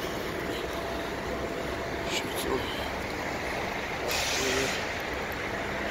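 A city bus engine rumbles as the bus pulls away.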